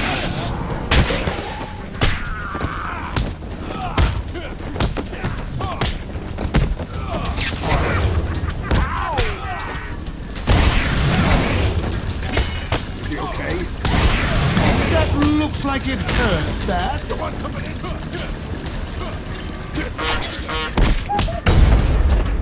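Punches and kicks land with heavy thuds in a fast brawl.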